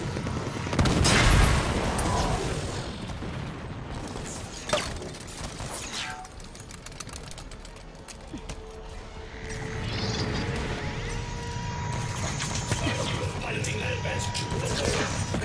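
A gun fires bursts in a video game.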